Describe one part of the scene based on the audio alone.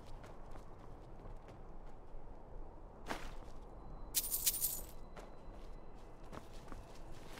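Footsteps crunch softly on rocky ground.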